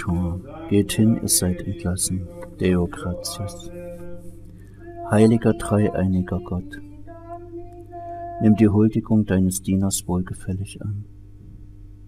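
An elderly man chants and speaks.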